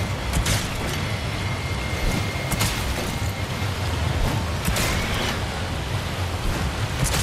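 A steady rumbling roar of rough water fills the air.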